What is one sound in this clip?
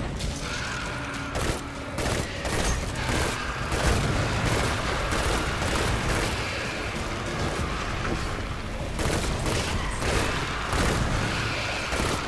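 Explosions boom with a low rumble.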